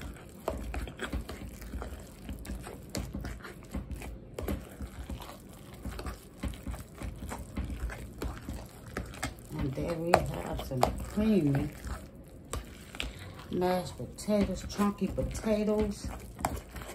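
A masher squishes and scrapes through soft potatoes in a metal pot.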